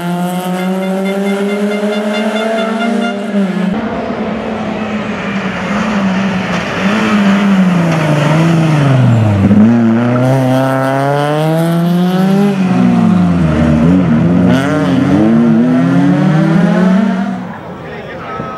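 A rally car engine revs hard, its pitch rising and falling through the gears.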